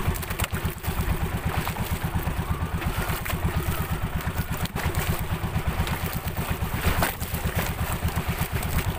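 A small boat engine chugs steadily close by.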